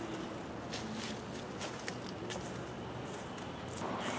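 Footsteps crunch on dry leaves.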